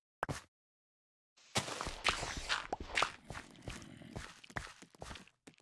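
Dirt crunches as blocks are dug out.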